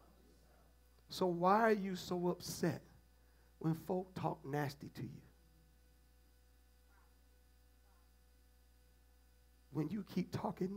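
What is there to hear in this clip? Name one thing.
A man speaks calmly and expressively through a headset microphone, pausing between phrases.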